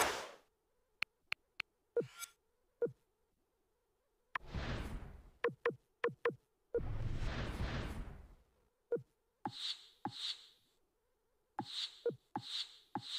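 Short electronic menu clicks and whooshes sound as selections change.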